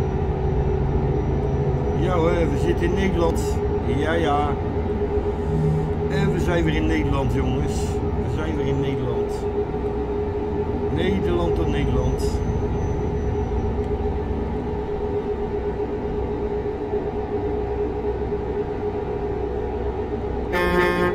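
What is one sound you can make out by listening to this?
Tyres hum on a smooth road.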